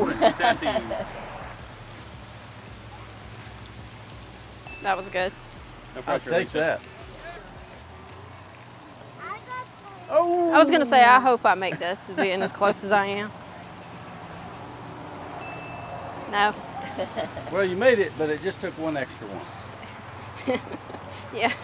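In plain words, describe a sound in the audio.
A woman talks with animation into a clip-on microphone outdoors.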